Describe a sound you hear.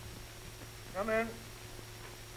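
A man briefly speaks up nearby.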